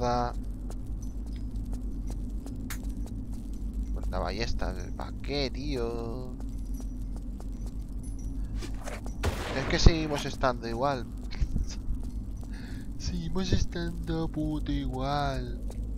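A fire crackles close by.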